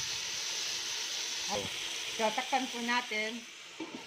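A metal spoon scrapes and stirs in a pan.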